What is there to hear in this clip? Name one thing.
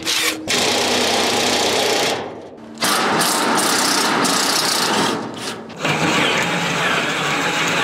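A power drill whirs as it bores into metal.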